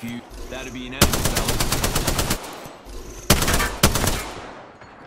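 A rifle fires rapid bursts of shots, loud and close.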